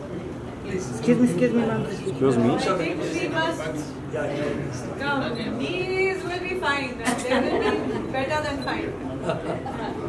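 A woman speaks nearby among a small group.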